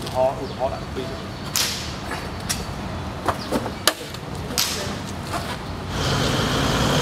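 Boxes thump as they are loaded into a car's boot.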